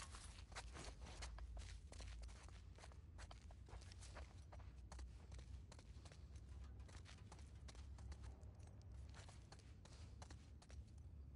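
Footsteps crunch over debris on a hard floor.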